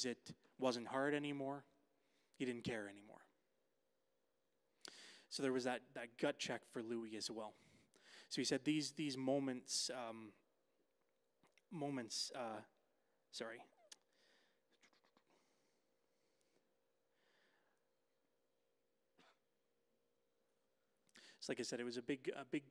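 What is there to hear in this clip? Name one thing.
A man speaks with animation into a microphone, with pauses between phrases.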